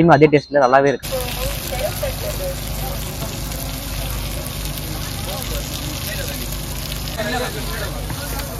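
Hot oil sizzles on a griddle.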